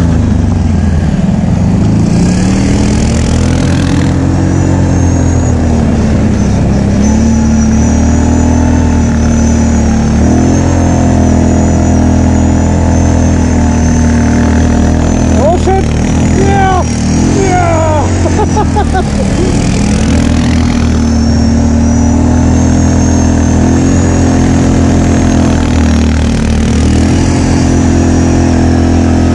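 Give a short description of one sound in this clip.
A quad bike engine roars close by, revving up and down.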